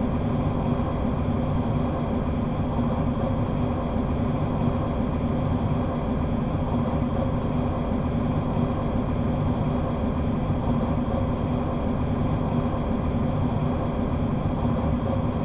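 An electric train's motor hums steadily as the train runs fast.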